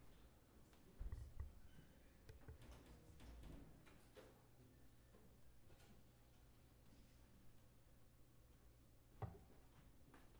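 Objects knock and thump against a table now and then.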